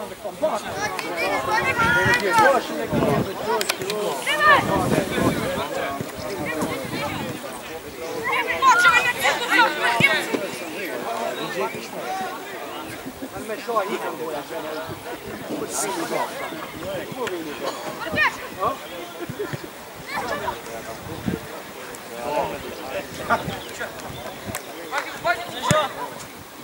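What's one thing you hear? Young players shout and call out to each other across an open field outdoors.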